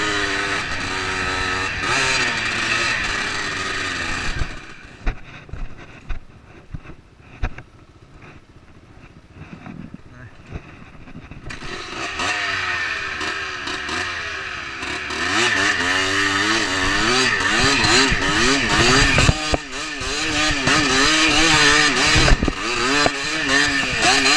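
A dirt bike engine revs and sputters close by.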